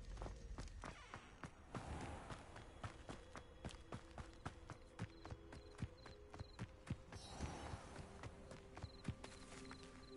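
Footsteps rustle through grass outdoors.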